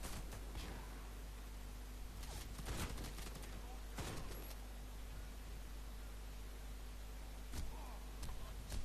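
Rifle shots crack sharply, one at a time.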